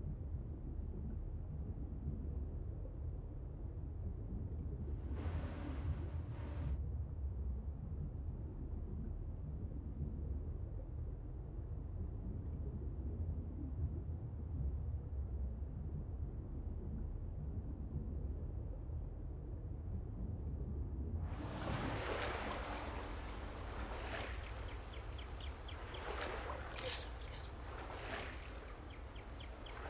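Water laps and churns gently.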